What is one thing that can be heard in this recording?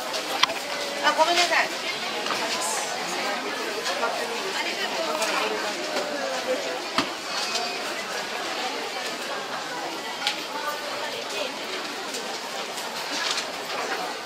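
A crowd of shoppers murmurs and chatters in the background.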